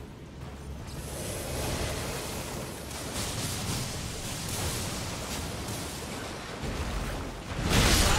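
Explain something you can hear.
A horse splashes through shallow water.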